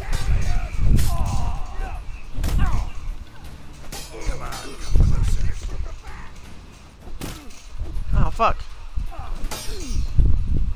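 Swords clash sharply in short bursts.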